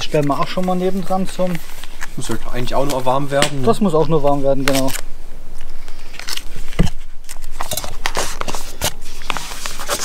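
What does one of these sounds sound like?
A plastic packet crinkles and rustles in someone's hands.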